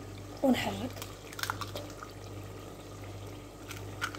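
An egg cracks and drops into a pot.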